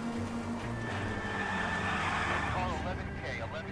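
Car tyres screech on the road during a sharp turn.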